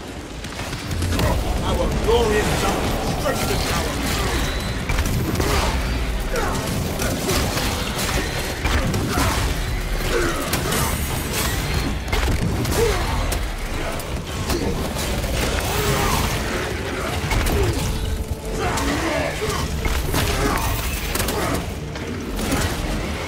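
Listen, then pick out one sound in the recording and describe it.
A chainsword whirs and grinds through flesh.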